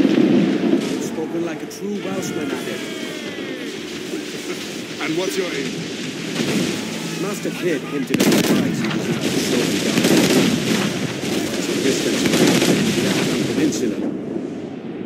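Cannons fire in loud booming blasts.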